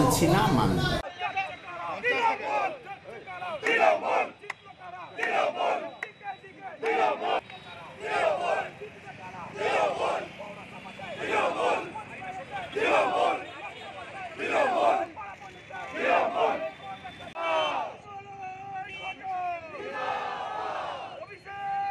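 A crowd of men chants slogans in rhythmic bursts outdoors.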